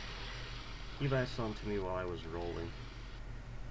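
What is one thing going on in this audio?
A creature shrieks loudly.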